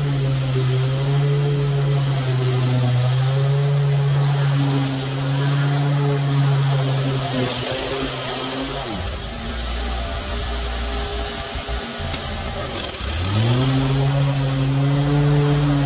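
A petrol lawn mower engine drones loudly close by.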